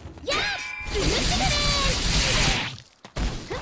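Blades whoosh loudly through the air.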